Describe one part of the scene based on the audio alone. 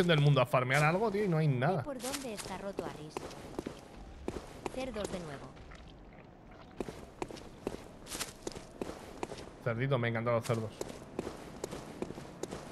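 Footsteps tap on stone.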